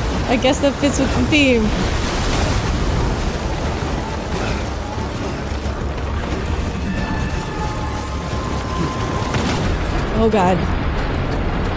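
Rushing water surges and churns.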